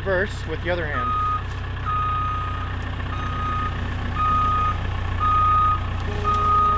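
A machine beeps in steady, repeated pulses.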